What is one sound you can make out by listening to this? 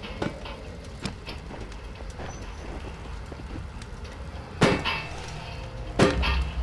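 A fire crackles softly in a small stove.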